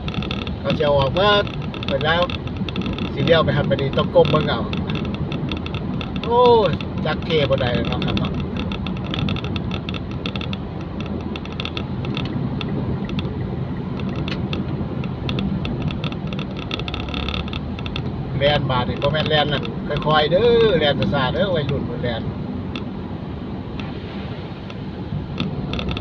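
Car tyres hiss on a wet road, heard from inside the car.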